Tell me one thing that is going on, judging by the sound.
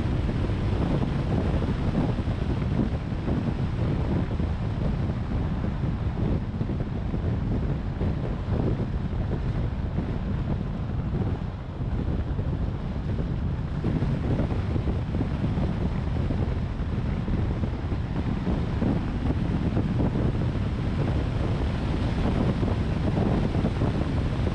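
Tyres roll over the road.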